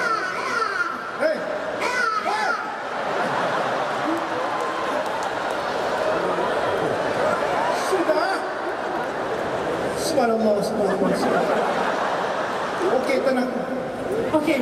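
A woman sings loudly through a microphone over a loudspeaker system.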